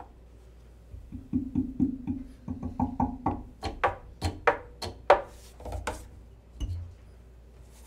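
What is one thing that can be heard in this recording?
Hands tap and knock on the wooden body of a double bass.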